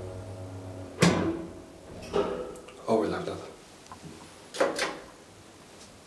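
An elevator car stops with a loud clunk, followed by several bumps.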